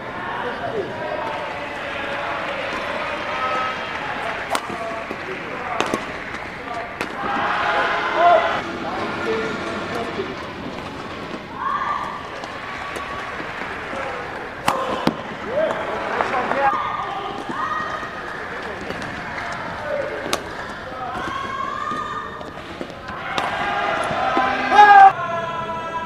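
Rackets smack a shuttlecock back and forth in a quick rally.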